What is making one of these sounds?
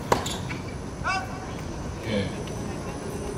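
Tennis shoes squeak on the court.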